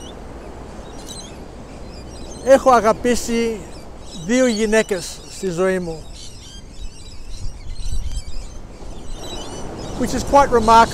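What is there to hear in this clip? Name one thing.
Wind gusts outdoors.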